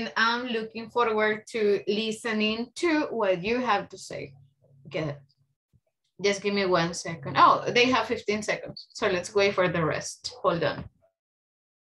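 A woman speaks calmly, heard through an online call.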